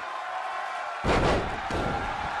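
A body slams hard onto a wrestling ring mat with a loud thud.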